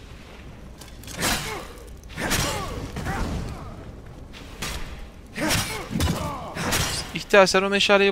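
Weapons strike and clash in a fight.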